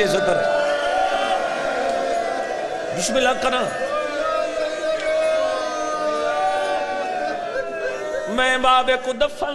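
A man speaks passionately through a microphone and loudspeakers in a reverberant hall, his voice rising and falling in a chanting cadence.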